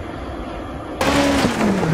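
A rally car engine roars as the car approaches.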